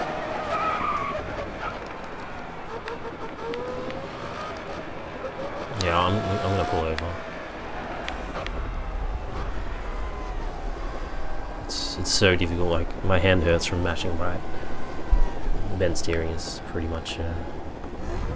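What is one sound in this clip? A racing car engine roars and then slows to a low hum.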